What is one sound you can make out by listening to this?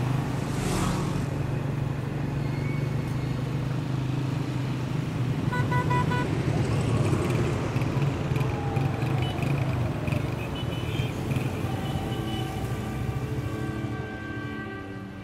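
A motorcycle engine drones steadily nearby.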